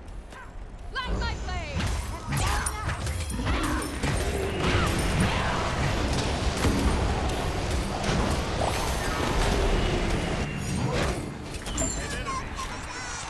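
Magic blasts crackle and boom in quick succession.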